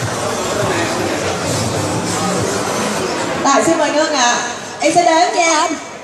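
A crowd of young people chatters and laughs nearby.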